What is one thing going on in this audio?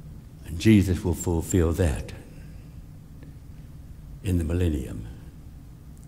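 A middle-aged man speaks calmly through a microphone in an echoing hall.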